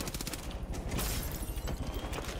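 An explosion booms with debris scattering.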